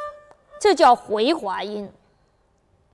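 A bowed fiddle plays short notes that slide up and down in pitch, close by.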